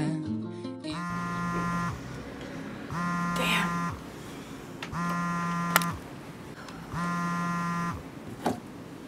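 A phone alarm beeps in short repeated bursts.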